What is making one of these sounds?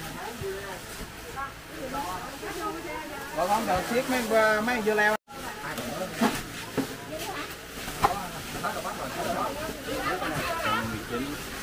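A crowd of men and women talk around the microphone, lively and close.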